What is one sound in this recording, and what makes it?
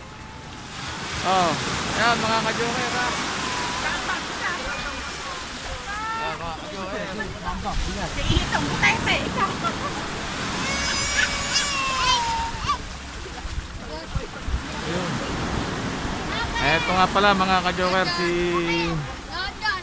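Several men and women talk and call out excitedly nearby.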